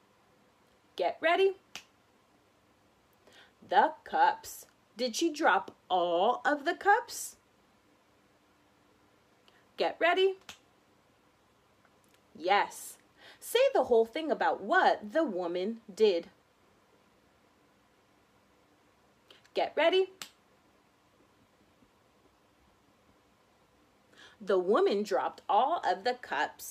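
A young woman speaks close by in short bursts with pauses.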